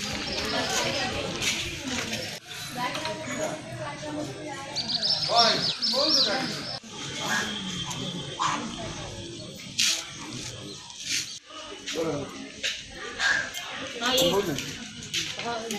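Women speak with agitation outdoors.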